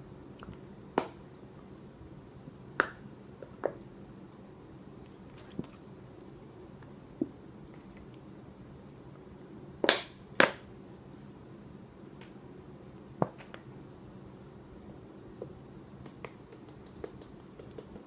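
Sharp knocks and taps sound close by as a bottle is handled.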